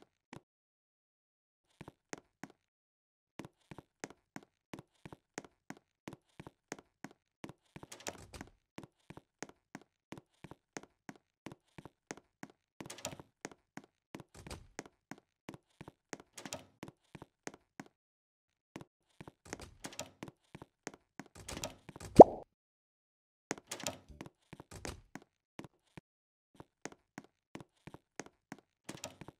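Quick footsteps patter steadily on a hard floor.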